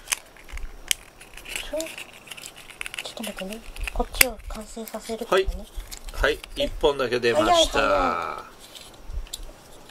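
Small plastic items rustle and tap as they are handled.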